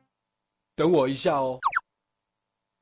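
A man speaks in surprise, close by.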